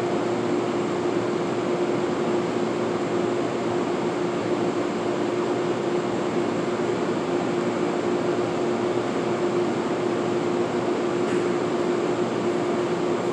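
A train idles with a steady low hum in the distance, in a large echoing space.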